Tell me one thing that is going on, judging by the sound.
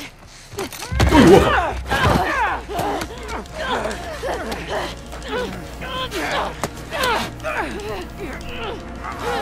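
A woman grunts and strains in a struggle.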